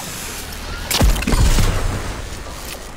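A weapon fires a loud crackling electric blast.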